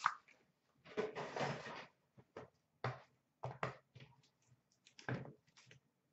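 Plastic cases clatter and click as hands stack and handle them.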